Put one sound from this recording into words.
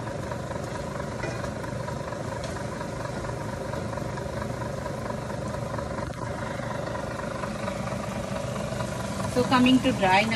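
A wooden spoon scrapes and stirs food in a pan.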